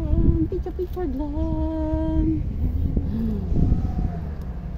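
A young woman talks close by, her voice a little muffled.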